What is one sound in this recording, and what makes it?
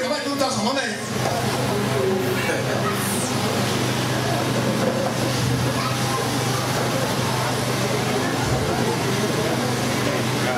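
A crowd chatters and cheers loudly.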